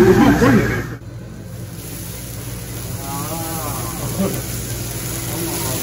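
Flames burst up and roar on a hot grill.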